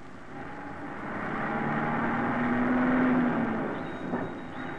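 A bus engine rumbles loudly as the bus drives closer.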